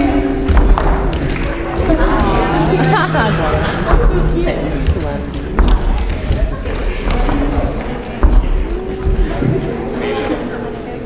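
A crowd of young people cheers and chatters loudly.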